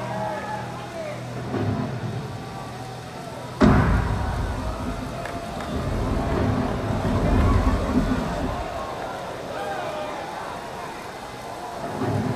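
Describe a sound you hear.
A singer's voice booms through loudspeakers.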